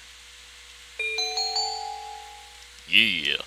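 A short chime rings out.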